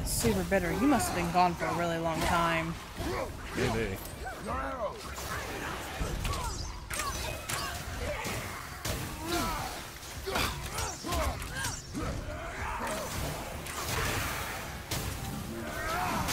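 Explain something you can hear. A heavy axe swings and strikes with loud thuds.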